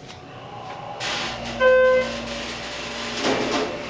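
An elevator motor hums quietly as the car moves.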